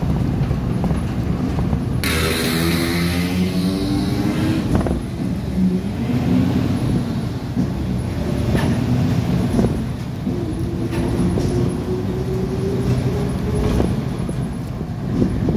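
A passing car swooshes by close outside.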